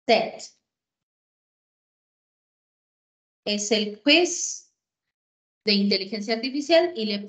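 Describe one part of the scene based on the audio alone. A woman speaks calmly through an online call, in short bursts with pauses.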